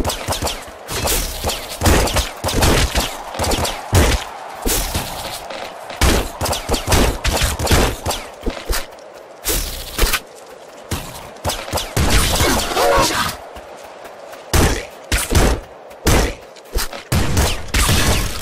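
Video game gunshots fire in rapid bursts.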